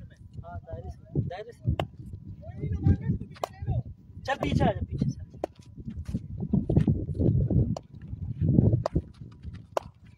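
A cricket bat taps on a hard pitch.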